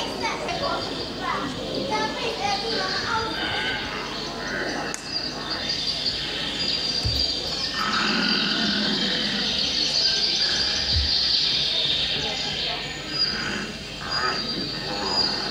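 Young children speak and call out excitedly, heard through a microphone from a distance.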